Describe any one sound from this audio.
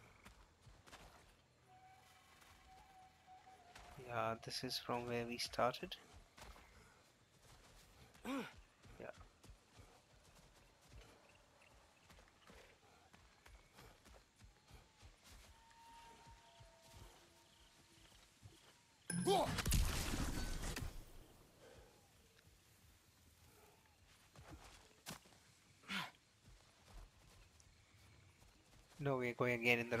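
Footsteps crunch through grass and leaves.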